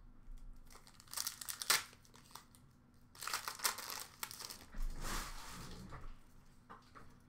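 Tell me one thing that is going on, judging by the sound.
Cards rustle and slide against each other as they are sorted by hand.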